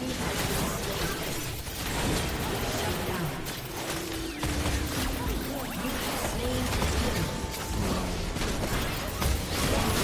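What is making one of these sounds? Magic spells burst and weapons strike in a fast video game battle.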